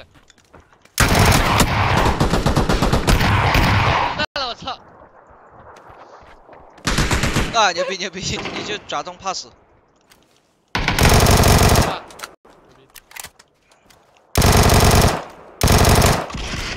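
Rapid gunfire bursts loudly in short volleys.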